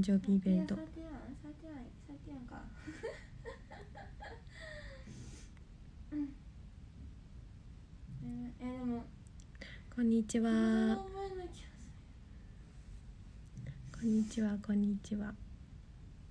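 A young woman speaks softly and hesitantly, close to the microphone.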